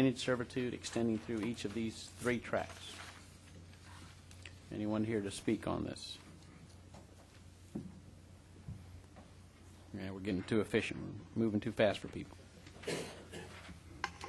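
An older man speaks calmly and slowly into a microphone.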